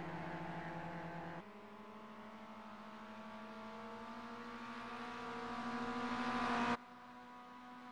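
A four-cylinder Mazda MX-5 race car engine accelerates, rising in pitch.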